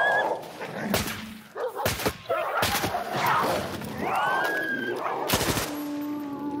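Gunshots fire sharply.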